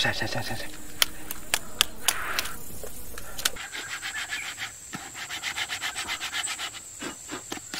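A knife chops into a coconut shell with sharp knocks.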